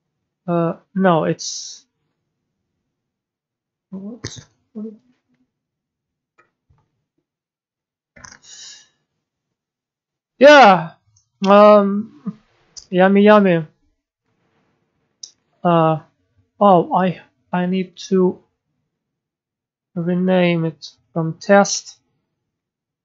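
A young man talks calmly into a close microphone, in short bursts with pauses.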